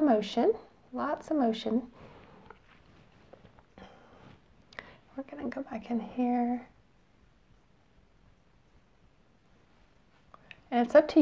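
A woman talks calmly and closely into a microphone.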